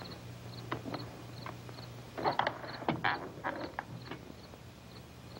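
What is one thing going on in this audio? A rifle's metal parts click and rattle.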